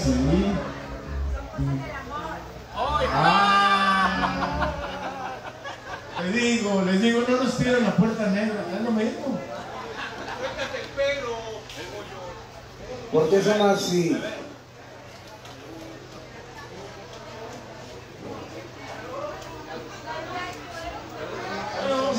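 A live band plays music with guitar, drums and keyboards.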